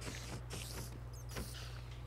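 A sword strikes a spider with a dull thump.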